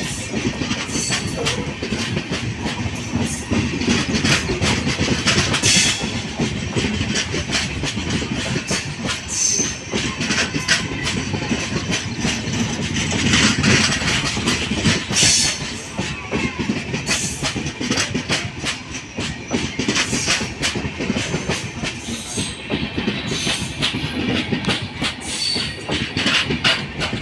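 A passenger train rolls past close by, its wheels clattering over the rail joints.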